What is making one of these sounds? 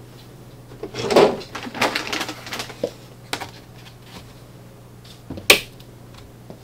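A hinged lid knocks and rattles as it is lifted and set down.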